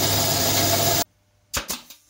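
A band saw runs with a loud, steady whine and then stops.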